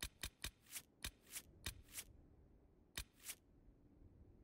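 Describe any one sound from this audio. Short menu clicks sound as choices are switched.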